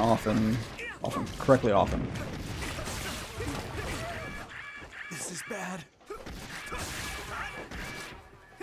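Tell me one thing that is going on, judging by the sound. Video game combat sounds clash and whoosh.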